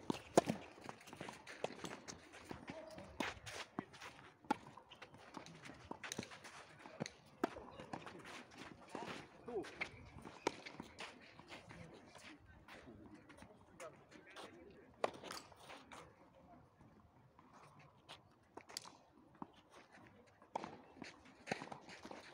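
Tennis balls are struck with rackets, with sharp pops.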